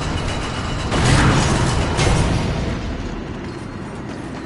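A ghostly form bursts out with a rushing swoosh.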